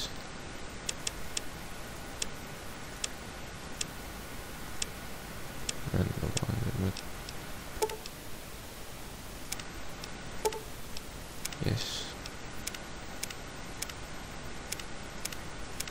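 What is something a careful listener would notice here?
Soft electronic clicks tick now and then.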